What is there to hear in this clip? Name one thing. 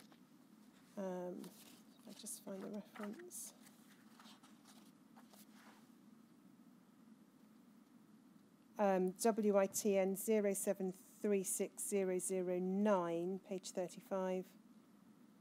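A middle-aged woman speaks calmly and haltingly into a microphone.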